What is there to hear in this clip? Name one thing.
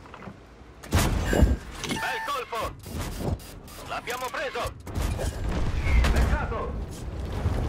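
Shell hits crack and explode in sharp bursts.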